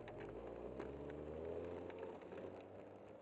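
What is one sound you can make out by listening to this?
A car engine hums close by and fades away.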